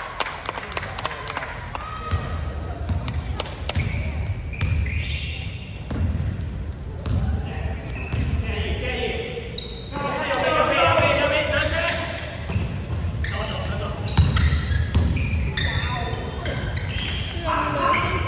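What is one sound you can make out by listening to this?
Young men shout and call out across the hall.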